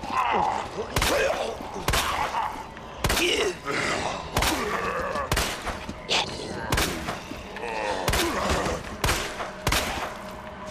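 A pistol fires repeated loud shots indoors.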